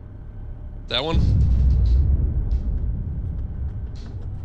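A tank cannon fires with a deep, rumbling boom.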